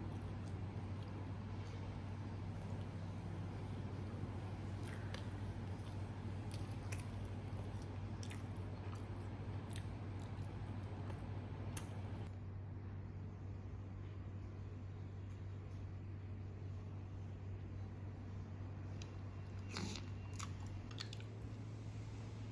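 Flatbread squelches softly as it is dipped into thick sauce.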